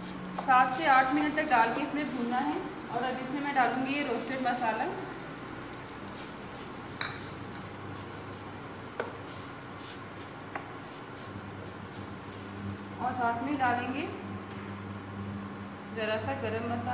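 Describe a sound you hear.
A metal spatula scrapes and taps in a nonstick frying pan.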